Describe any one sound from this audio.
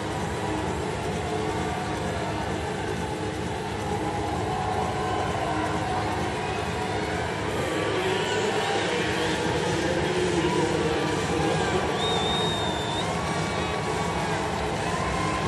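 A large stadium crowd cheers and roars, growing louder.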